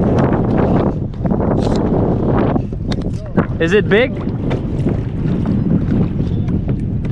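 Water laps against a kayak hull.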